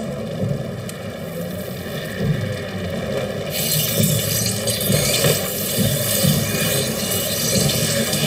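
A torch flame crackles softly.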